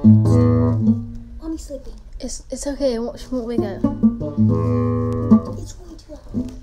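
Nylon guitar strings are plucked and ring out.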